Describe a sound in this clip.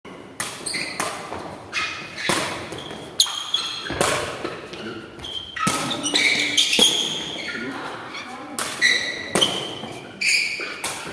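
Young men call out to each other across an echoing hall.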